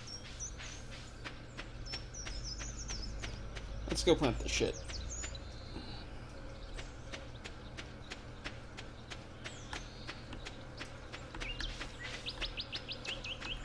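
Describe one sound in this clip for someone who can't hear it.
Quick, light footsteps patter steadily on soft ground.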